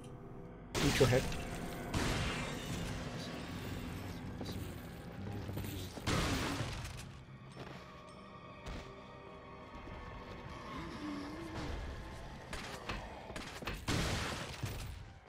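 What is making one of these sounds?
Gunshots bang sharply several times.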